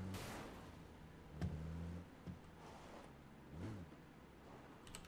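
A vehicle engine rumbles and then stops.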